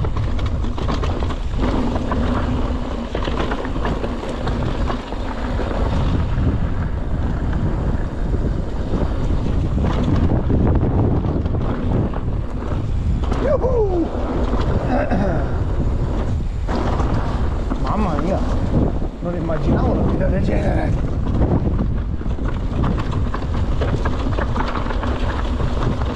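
Bike tyres rumble and crunch over a rocky gravel trail.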